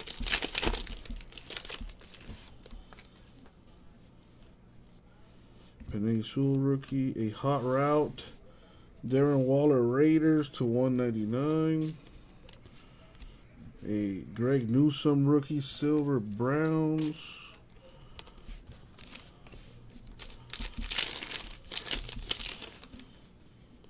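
A foil wrapper crinkles close by.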